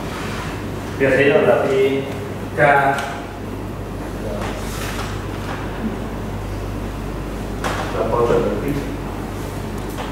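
A man lectures to an audience.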